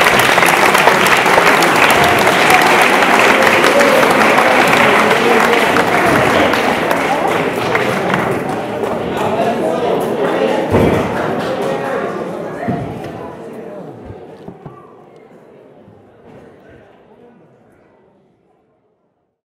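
An audience applauds loudly in a large hall, then the clapping fades away.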